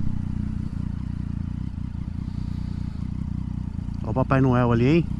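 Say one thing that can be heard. A motorcycle engine idles with a low rumble.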